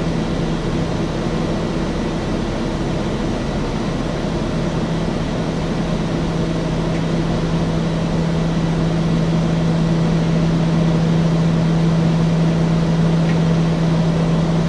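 A propeller engine drones steadily at a low pitch.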